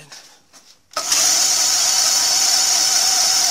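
A milling machine motor starts and runs with a steady, high whirring hum.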